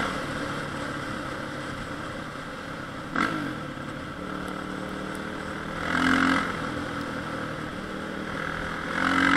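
A dirt bike engine runs close by, revving up now and then.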